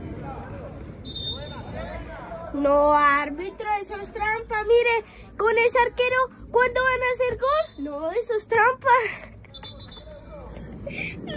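A young boy speaks with animation close by.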